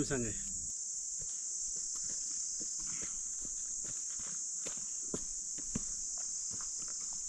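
Boots crunch on a rocky dirt trail.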